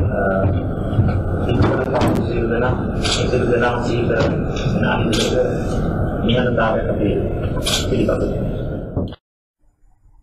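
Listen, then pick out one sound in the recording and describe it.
Several men talk over one another in a noisy, echoing room.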